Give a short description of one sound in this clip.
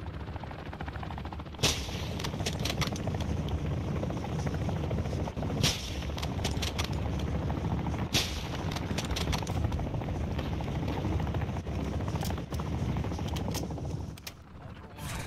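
A helicopter's rotor thuds steadily nearby.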